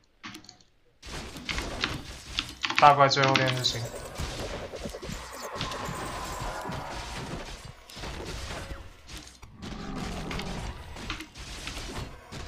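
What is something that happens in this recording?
Weapons clash and spells crackle in a video game battle.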